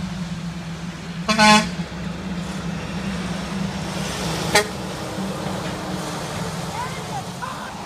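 A heavy truck rumbles past close by.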